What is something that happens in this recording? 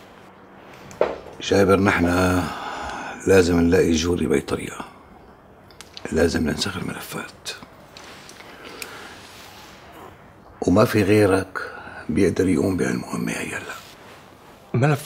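An older man speaks calmly and quietly nearby.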